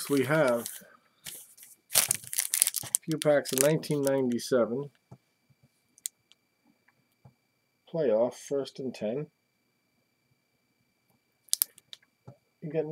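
A foil wrapper crinkles as it is handled.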